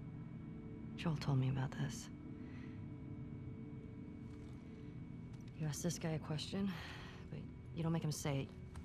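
A second young woman answers in a low, calm voice.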